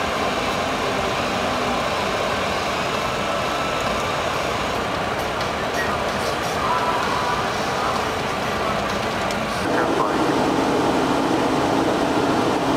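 Aircraft engines roar steadily, growing louder near the end.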